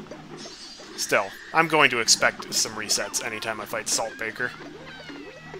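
Sharp cartoon zaps and bursts ring out in quick succession.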